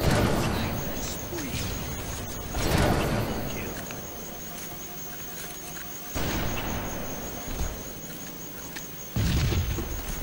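Loud rifle shots boom and echo, one every few seconds.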